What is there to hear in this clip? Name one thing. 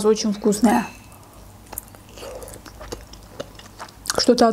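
A young woman bites into a dumpling with a soft wet crunch.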